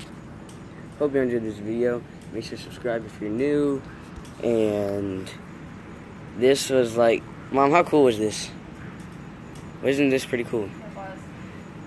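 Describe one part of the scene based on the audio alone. A young man talks casually and close by.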